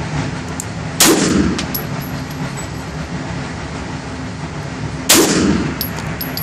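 A pistol fires loud shots that echo sharply around a hard-walled room.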